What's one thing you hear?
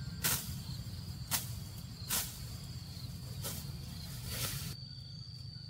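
Tall grass stalks snap sharply as they are cut.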